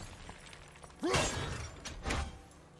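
An axe whooshes through the air.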